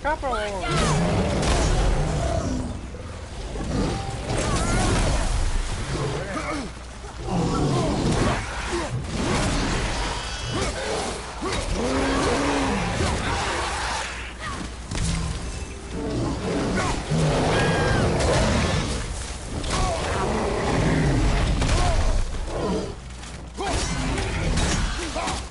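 Weapons strike and smash against monsters in a noisy fight.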